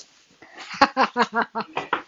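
A woman laughs.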